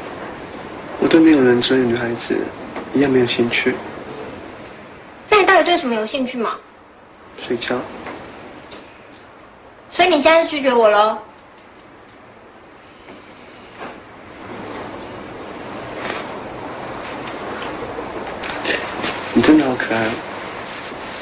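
A young woman speaks softly and teasingly up close.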